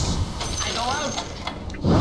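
Magic attacks whoosh and crackle in a fight.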